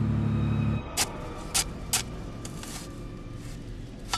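A shovel digs into earth with scraping thuds.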